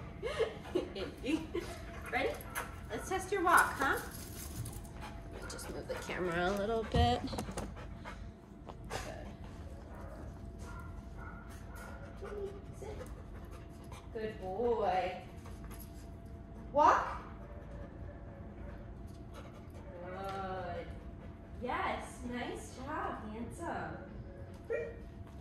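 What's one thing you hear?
A young woman talks to a dog with animation, close by.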